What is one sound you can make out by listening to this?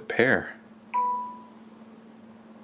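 A device plays a short notification chime.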